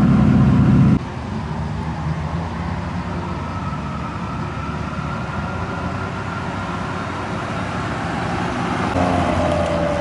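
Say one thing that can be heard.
A van's engine hums quietly as it rolls by.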